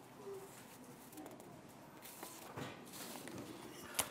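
Paper rustles as a man handles sheets.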